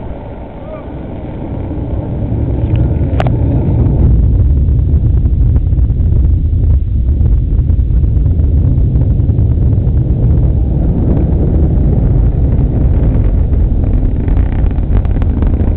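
A rocket launch rumbles in the distance, growing into a deep, loud roar.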